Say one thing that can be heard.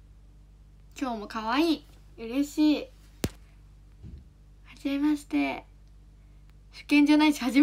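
A young woman speaks brightly and with animation close to a microphone.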